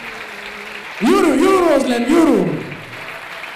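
A man announces loudly and drawn out through a microphone and loudspeakers in a large echoing hall.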